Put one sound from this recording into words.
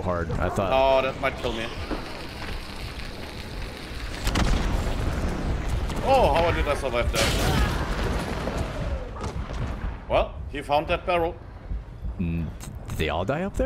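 A young man talks excitedly and exclaims close to a microphone.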